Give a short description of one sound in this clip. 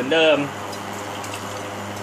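Water splashes in a bucket.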